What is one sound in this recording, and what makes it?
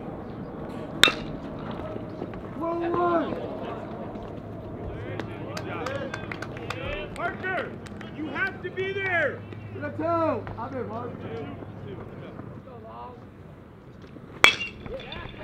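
A bat cracks sharply against a baseball outdoors.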